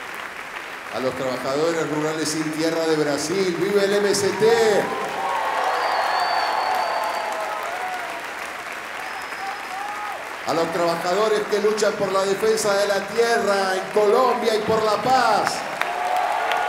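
A man sings loudly through a microphone in a large echoing hall.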